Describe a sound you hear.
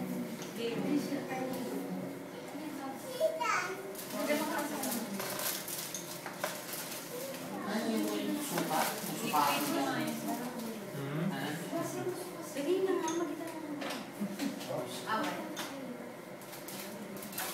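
A group of men and women sing together indoors.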